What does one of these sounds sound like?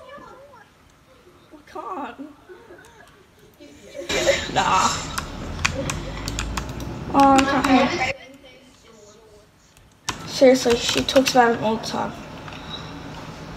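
Computer mouse buttons click softly.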